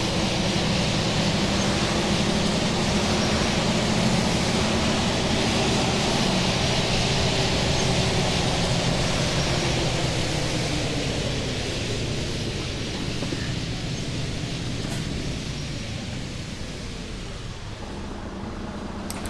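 A bus engine drones steadily and slowly winds down as the bus slows.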